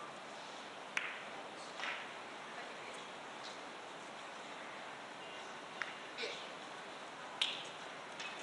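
Billiard balls click against each other and the cushions.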